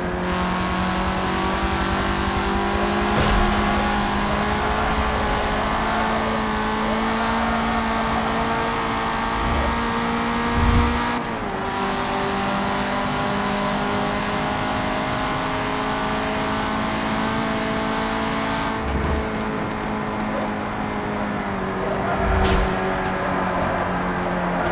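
A car engine roars steadily at high revs, with the pitch dropping briefly at each gear change.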